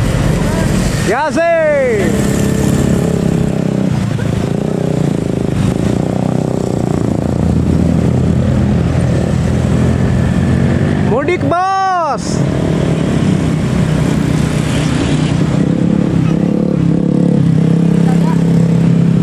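Motorcycle engines buzz past.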